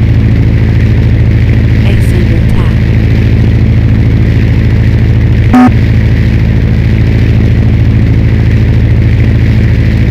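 A propeller plane's engine drones steadily and loudly.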